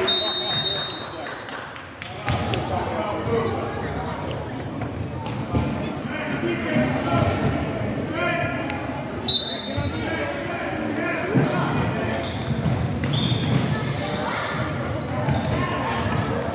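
Spectators chatter in an echoing gym.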